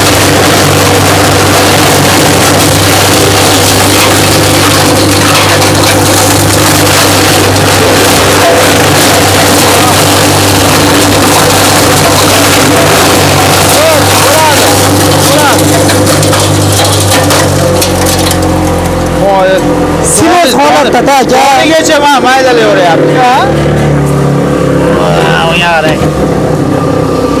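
Chaff cutter machines run with a loud, steady whirring drone.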